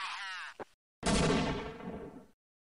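A loud explosion booms and quickly fades.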